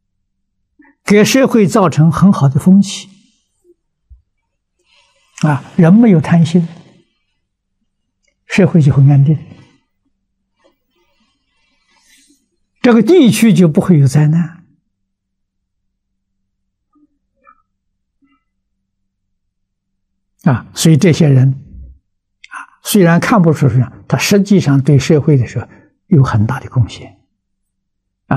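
An elderly man speaks calmly and slowly into a close microphone, in short phrases with pauses.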